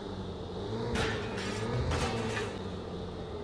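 A car knocks over barrels with loud clanks.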